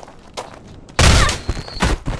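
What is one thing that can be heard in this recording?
A heavy weapon strikes a body with a thud.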